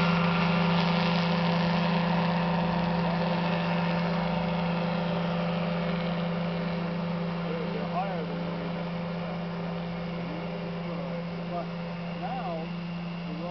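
A small model airplane motor drones steadily overhead and slowly fades as it flies away.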